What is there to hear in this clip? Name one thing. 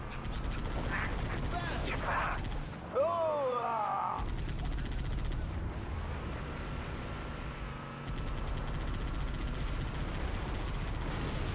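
A mounted machine gun fires in bursts.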